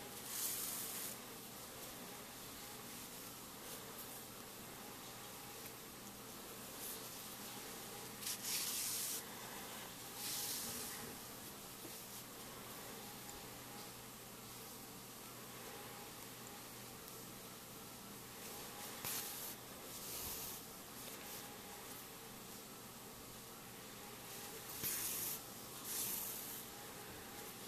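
Hands rustle and brush against soft knitted fabric very close by.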